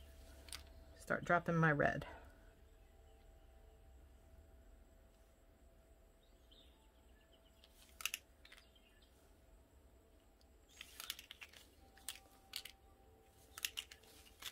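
Paint drips softly from a squeeze bottle into a dish.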